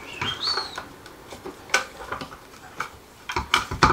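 Small plastic parts click and knock as a man handles them.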